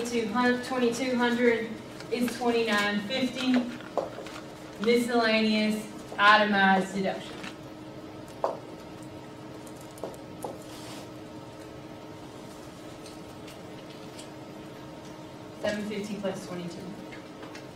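A woman talks in a lecturing tone in a room with some echo.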